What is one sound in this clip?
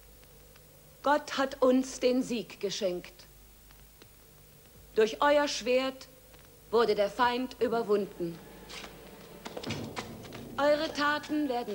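A man speaks slowly and solemnly, close by.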